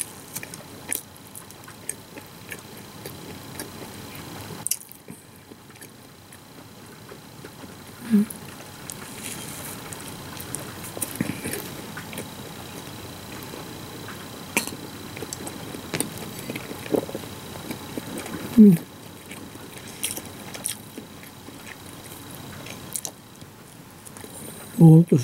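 A woman bites and chews crunchy food close up.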